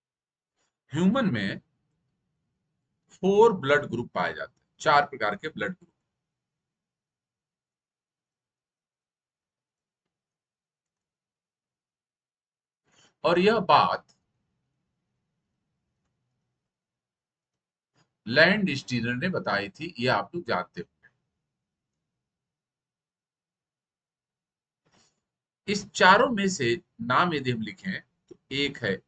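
A middle-aged man speaks calmly into a close microphone, in short bursts with pauses.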